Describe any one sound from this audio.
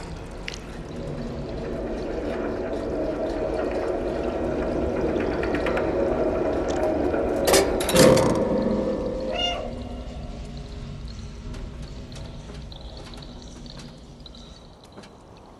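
A large fan whirs with a loud, steady hum that fades away.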